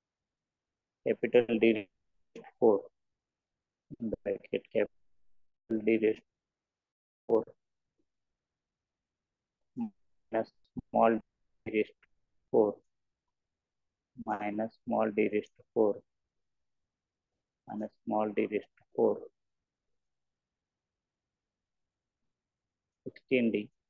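A man speaks calmly in short phrases through a close microphone.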